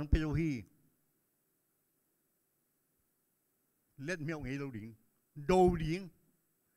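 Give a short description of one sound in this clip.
An elderly man speaks slowly and emphatically into a microphone, with pauses between phrases.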